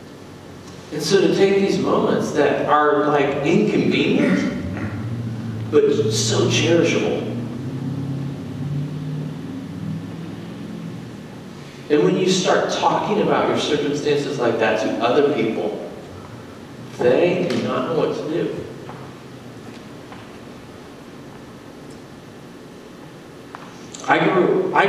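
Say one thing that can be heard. A woman speaks calmly through a microphone in a large echoing hall.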